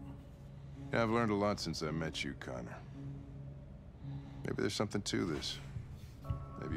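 An older man speaks in a low, calm voice.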